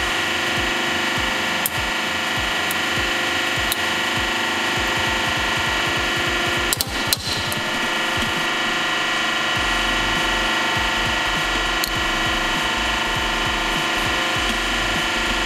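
A hydraulic press hums steadily.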